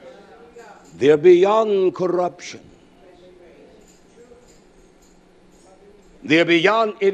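A man speaks with emphasis into a microphone, in a slightly echoing hall.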